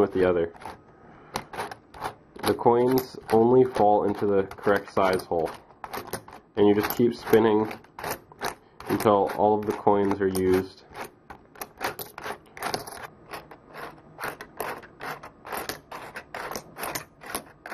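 Coins rattle and click inside a plastic container as it is turned.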